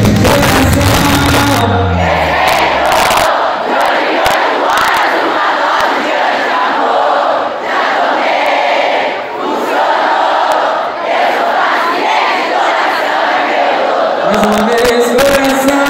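Hands clap in a crowd.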